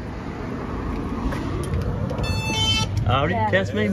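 A door is pushed open.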